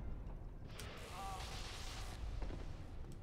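Electricity crackles and sizzles.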